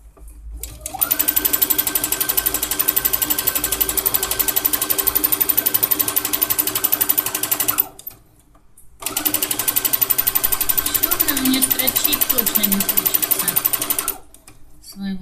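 A sewing machine stitches rapidly in bursts, with a fast steady rattle.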